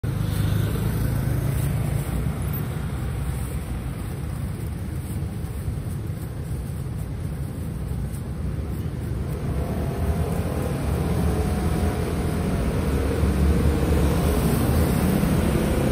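A knife slices the skin off a pineapple.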